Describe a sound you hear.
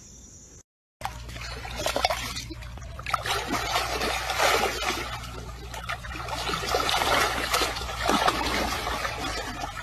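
Water splashes as a baby elephant rolls in a shallow pool.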